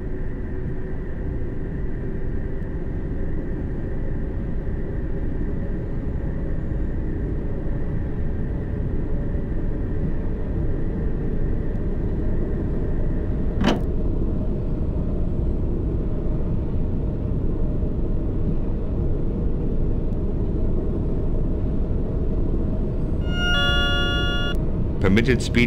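A train rumbles steadily through a tunnel, its low roar echoing.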